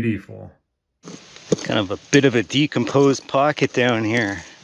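A hand tool scrapes and scratches through dry soil.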